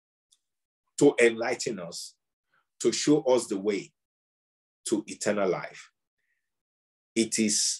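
A middle-aged man speaks with animation in short bursts over an online call.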